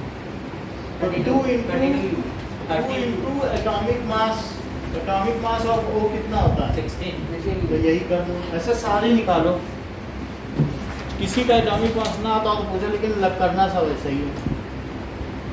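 A man talks nearby in a steady lecturing voice.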